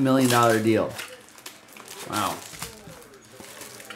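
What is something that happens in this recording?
Foil wrappers crinkle.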